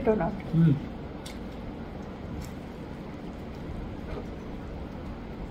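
A young woman chews food softly.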